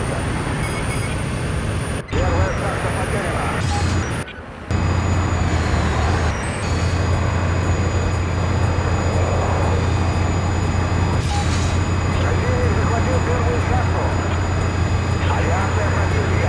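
A helicopter's rotor drones steadily and loudly.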